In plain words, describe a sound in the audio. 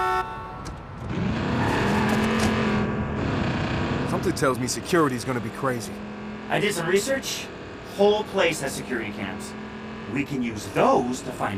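A car engine starts and revs as the car pulls away.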